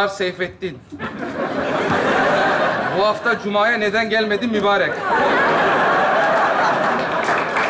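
A studio audience laughs and applauds loudly.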